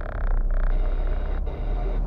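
A truck rumbles past in the opposite lane.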